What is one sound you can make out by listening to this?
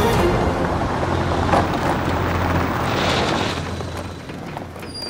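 A car drives slowly over a gravel track.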